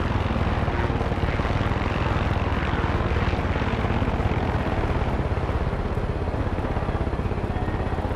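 A helicopter's rotor thumps rapidly and steadily overhead.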